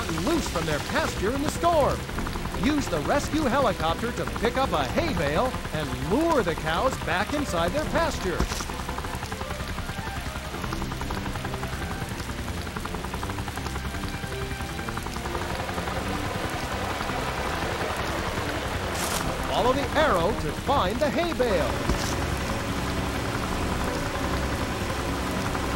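A helicopter's rotor whirs and thrums steadily.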